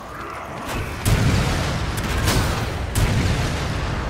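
Gunshots fire in loud bursts.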